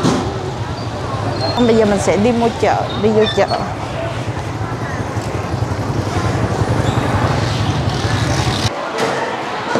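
Motorbike engines hum and rumble nearby.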